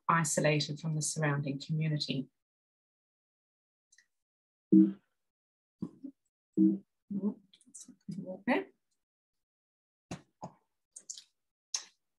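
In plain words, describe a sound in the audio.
A woman speaks calmly through a microphone on an online call, with pauses.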